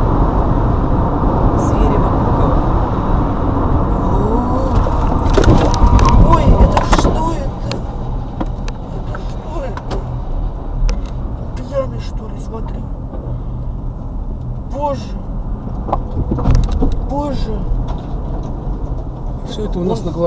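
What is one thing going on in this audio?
Tyres roar steadily on a highway as a car drives along.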